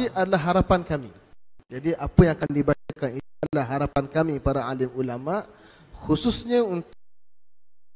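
A man speaks steadily into microphones.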